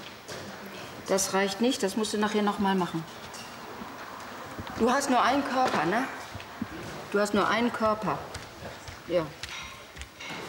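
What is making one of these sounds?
A middle-aged woman speaks calmly, close by.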